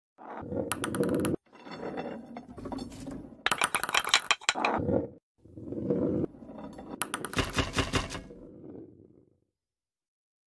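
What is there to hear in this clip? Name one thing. A small ball rolls and clatters through a marble run.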